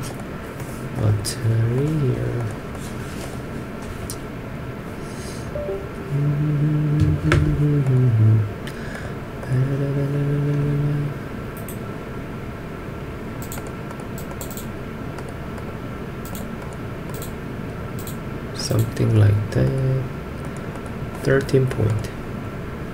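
A man talks calmly into a nearby microphone, in short bursts.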